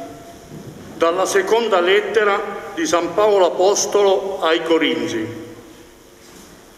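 A man reads out through a microphone in an echoing hall.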